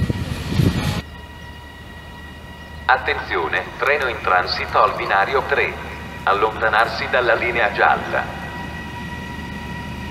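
An electric locomotive approaches hauling a freight train.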